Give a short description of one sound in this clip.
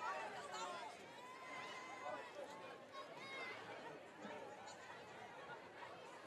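A crowd of young women cheer and shout outdoors.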